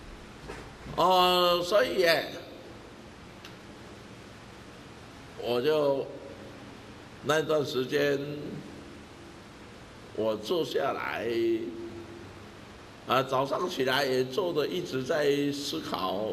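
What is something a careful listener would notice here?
An elderly man speaks calmly and with expression into a nearby microphone, pausing between phrases.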